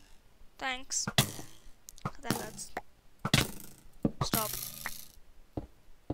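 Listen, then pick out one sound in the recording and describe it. Wooden blocks knock softly as they are placed one after another.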